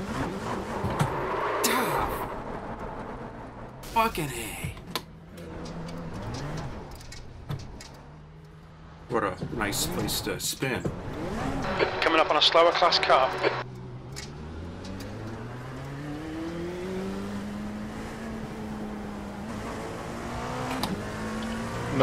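A racing car engine drones and shifts pitch as it speeds around a track.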